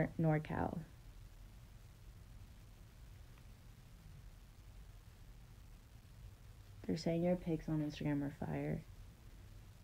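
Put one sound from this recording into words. A young woman speaks softly and close by, in short bursts.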